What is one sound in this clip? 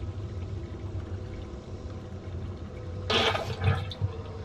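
Water trickles into a plastic tub.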